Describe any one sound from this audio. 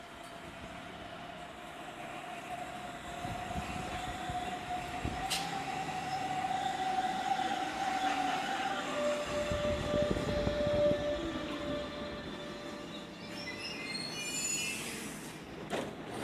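A train pulls into a station with a rising hum and squealing brakes.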